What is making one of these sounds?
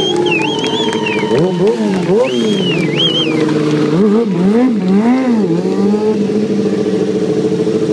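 A motorcycle engine revs up and down loudly.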